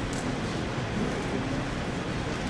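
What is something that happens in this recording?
A second man speaks briefly into a microphone.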